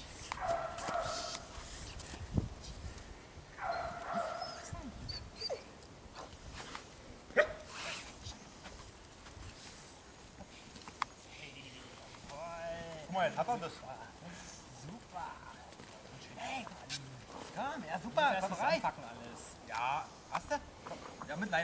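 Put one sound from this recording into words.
A dog's feet scuffle on dry grass.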